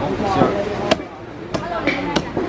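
A cleaver knocks against a wooden chopping block.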